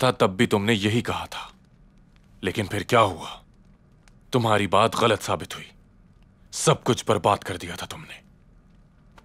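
A middle-aged man speaks calmly in a low, close voice.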